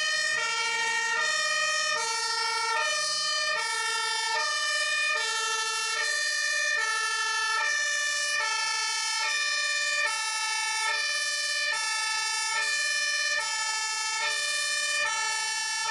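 A fire engine's two-tone siren wails loudly, alternating high and low.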